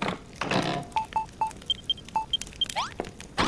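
Short electronic blips sound one after another.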